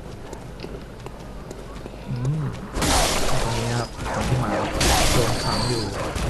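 Wooden crates crash and splinter.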